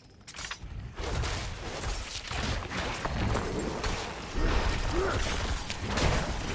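Magic spells crackle and boom in a loud fight.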